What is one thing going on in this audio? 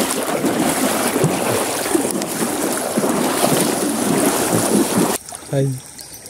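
Water splashes loudly as a man wades through it.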